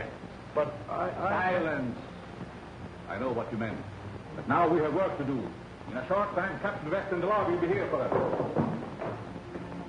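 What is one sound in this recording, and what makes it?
A second man answers in a gruff voice, close by.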